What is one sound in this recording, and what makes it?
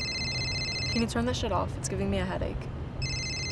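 A teenage girl speaks up close.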